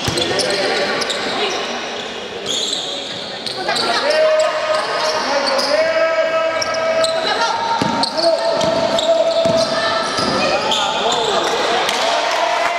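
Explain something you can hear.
Feet patter across a wooden court in a large echoing hall.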